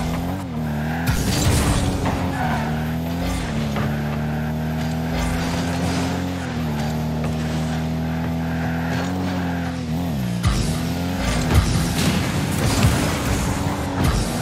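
A boost jet hisses and roars.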